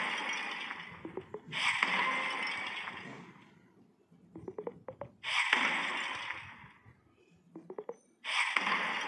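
Blocks click into place in quick taps.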